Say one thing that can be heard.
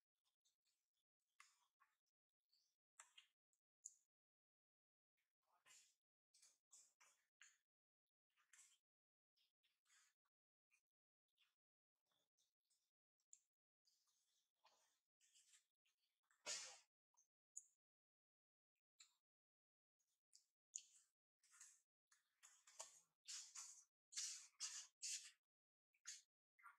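A baby monkey squeals in short, high bursts.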